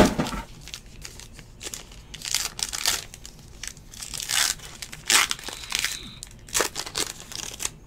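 A foil pack crinkles as hands tear it open.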